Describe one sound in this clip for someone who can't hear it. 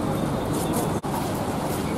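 A bus engine hums nearby.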